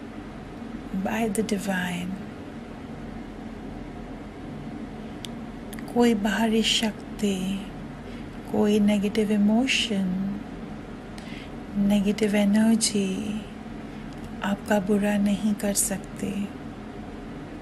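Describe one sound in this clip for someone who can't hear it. A woman speaks calmly and clearly into a microphone, in short phrases with pauses.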